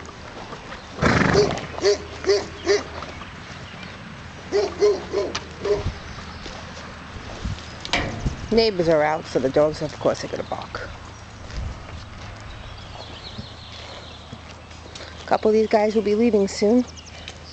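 Sheep tear and munch grass close by.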